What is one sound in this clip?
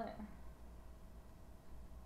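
A young woman gulps a drink from a plastic bottle.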